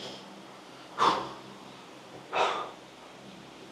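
A man exhales sharply with effort.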